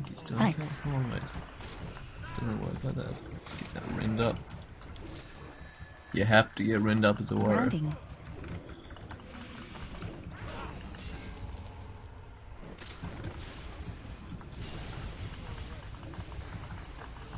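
Sword blows and spell effects clash in a fast fight.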